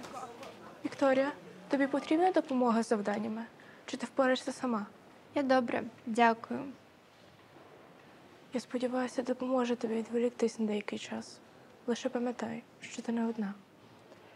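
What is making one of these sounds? A young woman speaks gently and close by.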